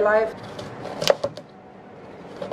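A knife chops on a cutting board.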